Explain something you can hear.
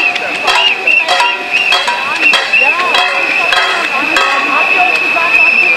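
A crowd of marchers shouts and chatters outdoors.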